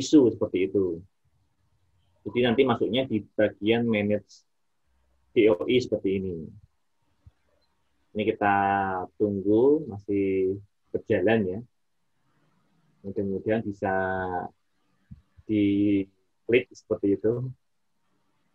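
A man speaks calmly through a computer microphone, explaining in short phrases.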